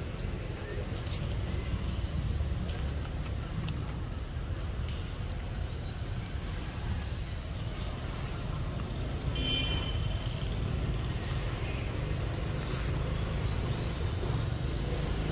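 Branches rustle and creak as a young monkey climbs.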